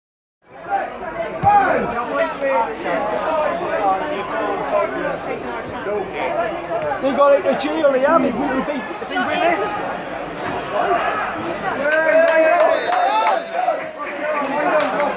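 A large crowd chants and sings in an open-air stadium.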